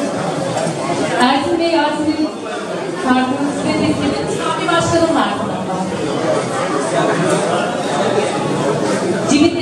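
A woman speaks through a microphone and loudspeakers in a large echoing hall.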